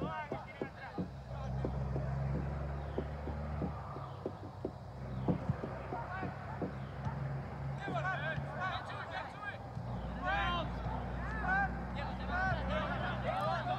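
Young players shout faintly in the distance.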